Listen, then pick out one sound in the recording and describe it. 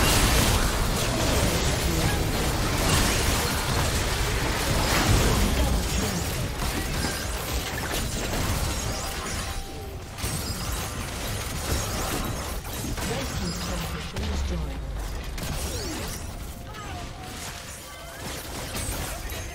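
Game spell blasts and weapon clashes crackle in a busy fight.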